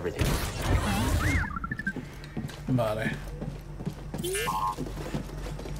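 A small robot chirps and beeps in rising and falling tones.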